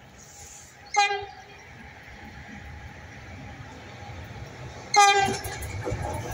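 An electric locomotive sounds its horn in two short blasts.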